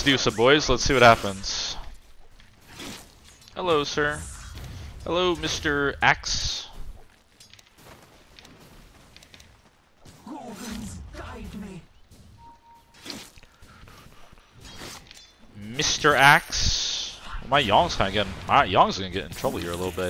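Game sound effects clash and whoosh.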